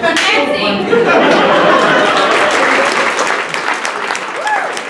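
An audience laughs and cheers in a room.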